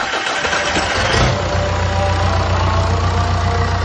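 A diesel engine fires up and runs with a steady, deep rumble.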